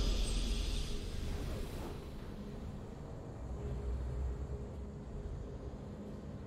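A triumphant victory fanfare plays with a shimmering burst that fades.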